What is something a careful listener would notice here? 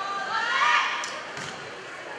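A volleyball is struck hard with a hand with a sharp slap.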